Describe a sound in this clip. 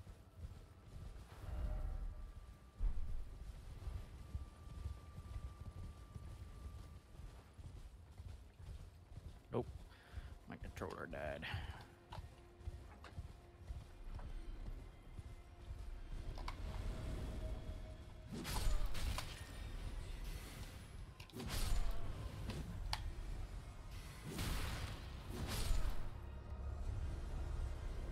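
Hooves thud steadily on grass as a horse gallops.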